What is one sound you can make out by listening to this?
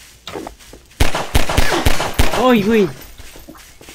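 A pistol fires a few quick shots.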